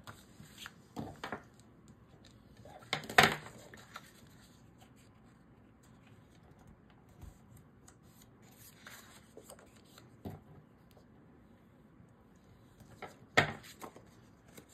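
A bone folder scrapes across paper, creasing a fold.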